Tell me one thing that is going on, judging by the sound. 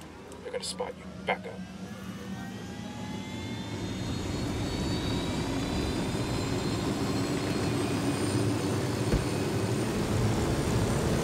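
A helicopter's engine and rotor whir, growing steadily louder as the helicopter comes near.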